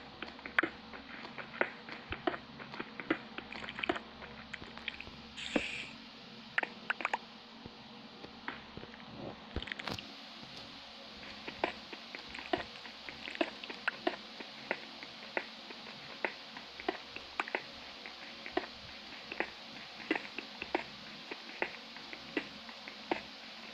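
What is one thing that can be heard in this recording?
Stone blocks crack and crumble under repeated pickaxe strikes.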